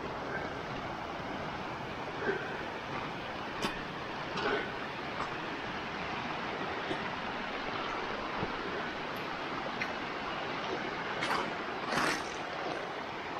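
A shallow stream babbles and splashes over stones close by.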